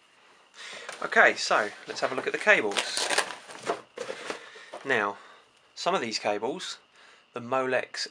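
A fabric bag rustles as hands handle it.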